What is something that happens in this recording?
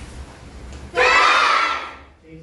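A group of children shout together in unison.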